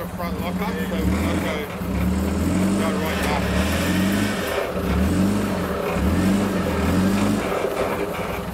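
A four-wheel-drive engine revs hard in repeated bursts.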